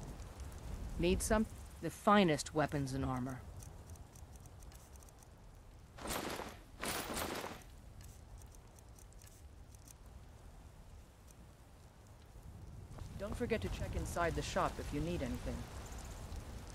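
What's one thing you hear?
A young woman speaks calmly.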